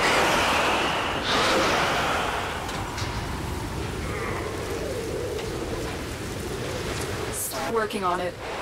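Electric arcs crackle and hiss loudly.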